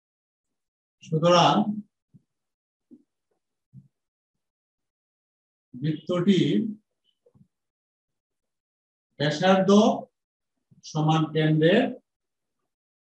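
A middle-aged man speaks calmly in short phrases, close by.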